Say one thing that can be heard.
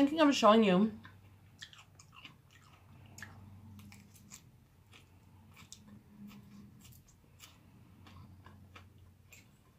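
A woman chews food close by.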